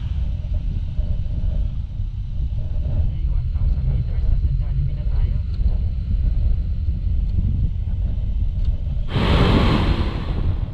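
Wind rumbles and buffets against the microphone.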